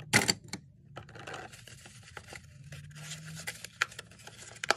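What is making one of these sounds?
Thin cardboard rustles and scrapes as it is handled.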